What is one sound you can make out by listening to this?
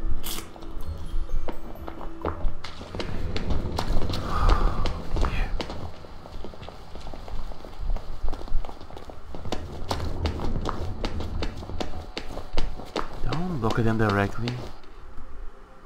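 Footsteps tap steadily on cobblestones.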